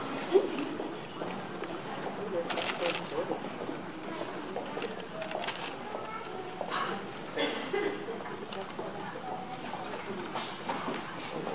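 A choir of young children sings together in a large echoing hall.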